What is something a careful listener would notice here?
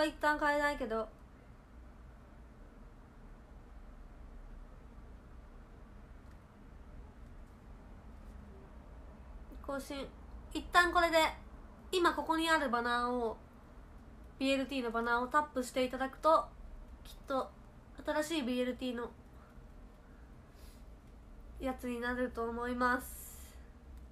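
A young woman talks softly and closely into a microphone, with pauses.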